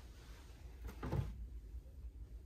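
A small fridge door opens with a soft thud.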